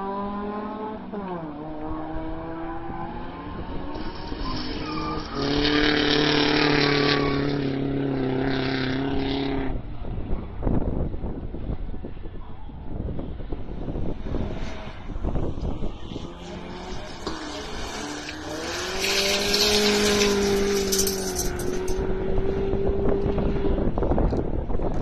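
A rally car engine roars and revs hard.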